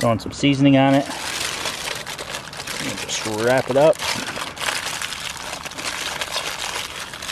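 Aluminium foil crinkles and rustles.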